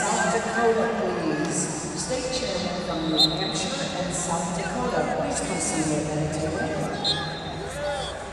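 A crowd chatters and calls out in a large echoing hall.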